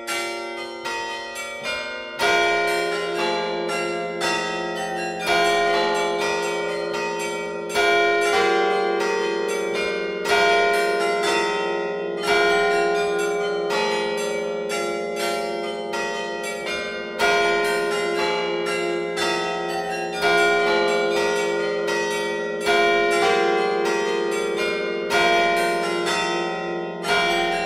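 Carillon bells in a church tower ring out a melody.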